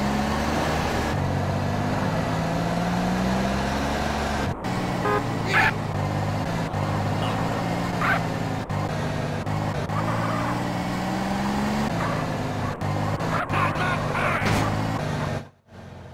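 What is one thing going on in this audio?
A pickup truck engine hums as it drives along.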